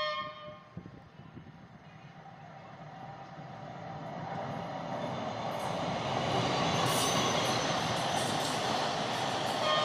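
A train approaches and roars past close by, growing louder.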